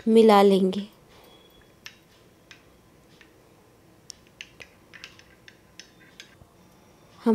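A spoon clinks against a glass bowl while stirring.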